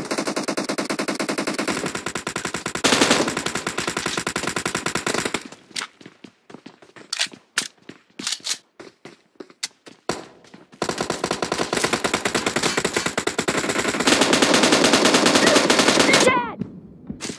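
A machine gun fires in long rapid bursts.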